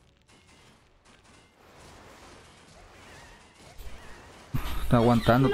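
Magic spells crackle and weapons clash in a video game battle.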